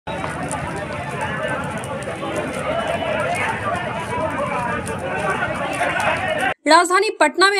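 A fire crackles as it burns.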